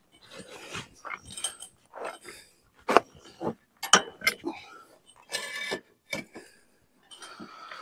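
Metal parts rattle and clank as a man moves an old hay rake.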